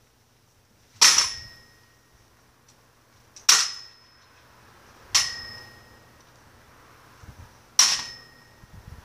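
A toy blaster fires with a sharp snap.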